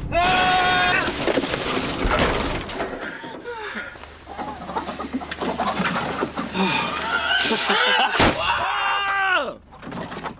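A young woman screams loudly close by.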